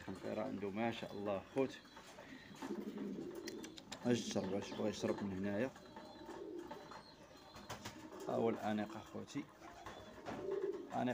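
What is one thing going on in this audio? Pigeons coo nearby in bursts.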